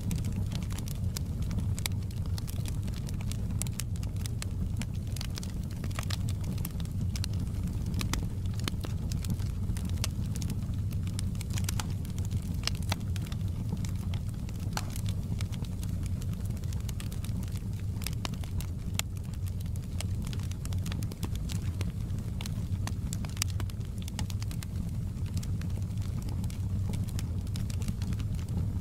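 A wood fire roars with a low, steady rumble.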